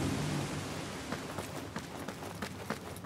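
Footsteps walk over stone and gravel.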